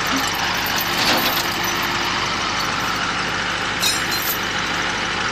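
Metal clanks sharply a few times.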